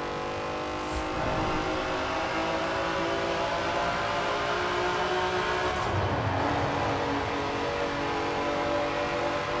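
A racing car engine echoes loudly through a tunnel.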